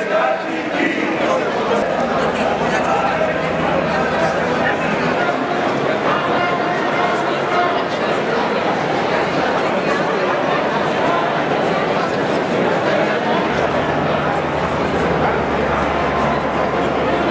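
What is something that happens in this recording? A large crowd murmurs and shuffles along outdoors.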